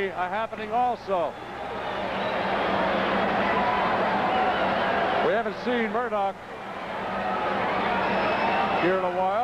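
A large crowd cheers and roars in a big echoing arena, swelling louder.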